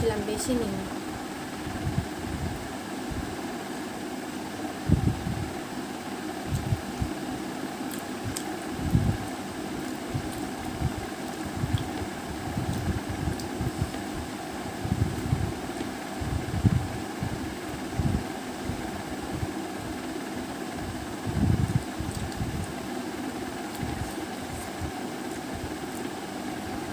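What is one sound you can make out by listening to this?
A young woman chews food with her mouth close to a clip-on microphone.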